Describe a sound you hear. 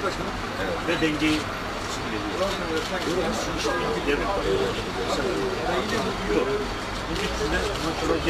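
An elderly man talks with animation up close.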